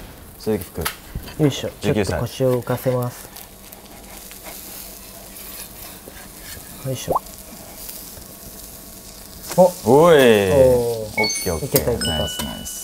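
Metal spatulas scrape and clink on a hot griddle.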